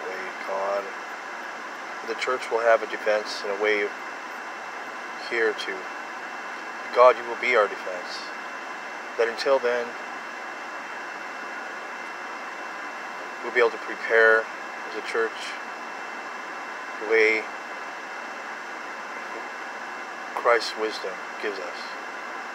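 A middle-aged man speaks slowly and calmly close by, with long pauses.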